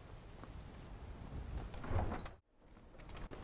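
A heavy wooden door swings open with a thud.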